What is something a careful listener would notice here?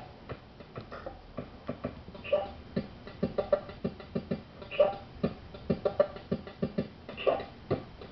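Fingers press and click small buttons on a device.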